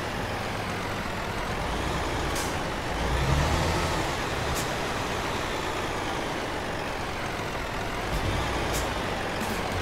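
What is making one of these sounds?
A truck engine idles with a low, steady rumble.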